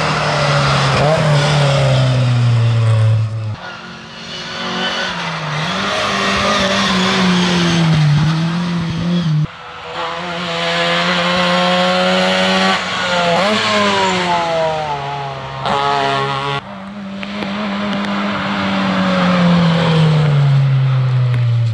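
Rally car engines roar loudly as the cars speed past one after another, revving and shifting gears.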